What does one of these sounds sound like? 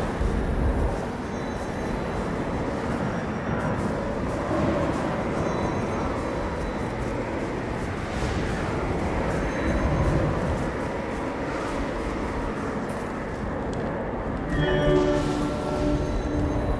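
Strong wind blows and gusts steadily.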